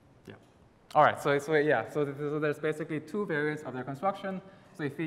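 A young man speaks calmly into a microphone in a large hall.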